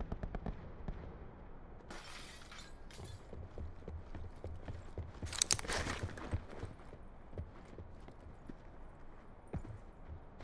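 Footsteps fall on a concrete floor.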